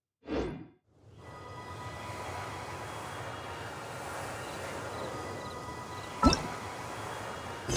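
A gentle breeze blows steadily outdoors.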